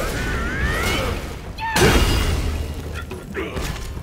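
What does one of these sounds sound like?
Flames roar and crackle in a burst of fire.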